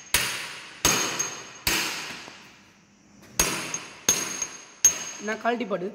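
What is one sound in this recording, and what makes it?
A hammer strikes a metal impact driver with sharp, ringing blows.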